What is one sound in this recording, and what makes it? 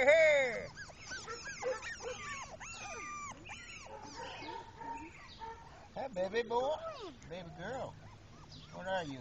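Puppies whine and yelp in high, bending cries.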